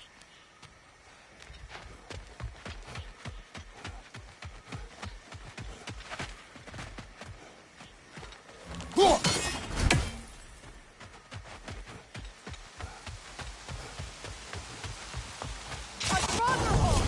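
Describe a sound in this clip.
Heavy footsteps thud steadily on the ground.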